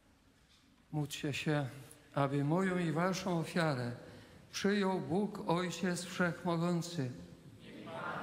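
An elderly man sings a chant through a microphone in a large echoing hall.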